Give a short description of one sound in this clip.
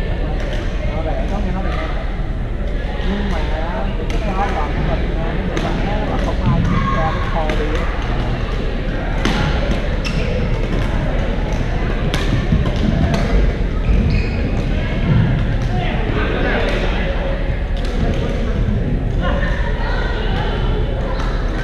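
Many people talk and call out in the echoing hall.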